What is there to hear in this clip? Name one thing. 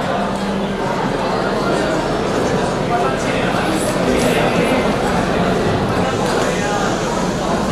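A large audience chatters and murmurs in a big hall.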